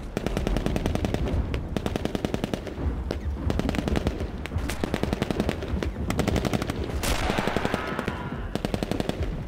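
An automatic rifle fires in rapid bursts close by.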